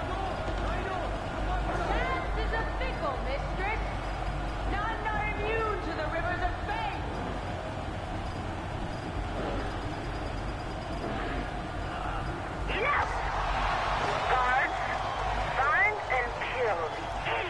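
A crowd roars and cheers in a large echoing hall.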